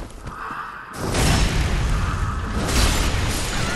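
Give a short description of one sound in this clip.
A sword slashes and strikes flesh.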